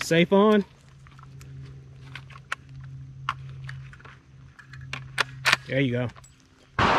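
A rifle bolt clicks and clacks as it is worked.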